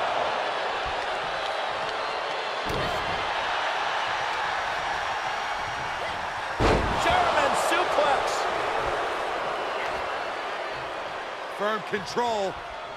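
A large crowd roars and cheers steadily in an arena.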